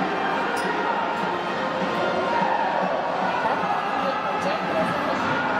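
A crowd claps in a steady rhythm.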